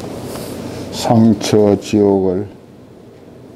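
An elderly man speaks calmly through a microphone in a short burst.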